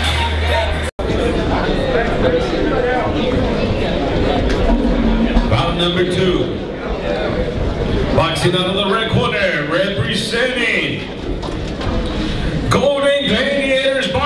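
A crowd of people chatters and calls out in a large echoing hall.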